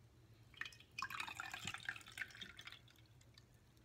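Juice trickles into a glass.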